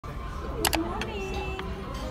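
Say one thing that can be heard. A china egg cup clinks on a saucer.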